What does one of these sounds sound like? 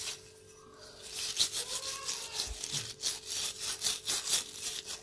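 Hands scrub a small metal part with a rough scourer.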